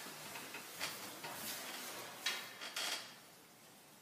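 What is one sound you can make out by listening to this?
Young women giggle softly nearby.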